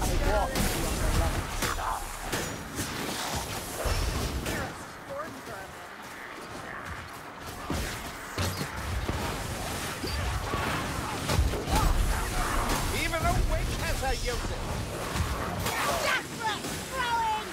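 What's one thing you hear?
Weapons clash and slash with heavy impacts.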